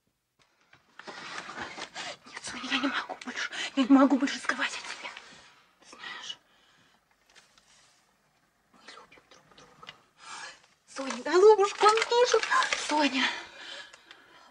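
A young woman speaks softly and urgently, close by.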